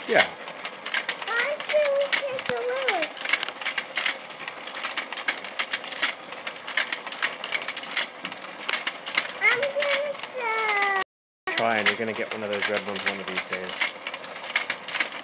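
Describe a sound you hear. A toy fishing game's turning board clicks and rattles steadily.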